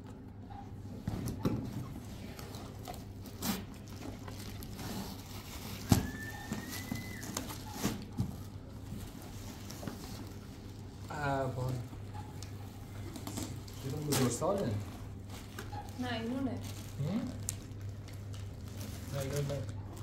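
Cardboard boxes rustle and thump as they are opened.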